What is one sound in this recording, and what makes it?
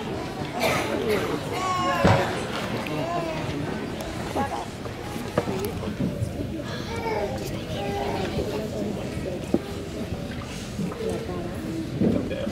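Several women and girls chat quietly nearby.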